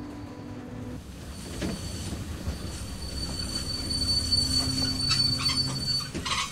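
A diesel locomotive rumbles along the tracks.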